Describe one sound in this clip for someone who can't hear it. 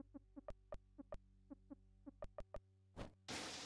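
Short electronic blips chirp in quick succession.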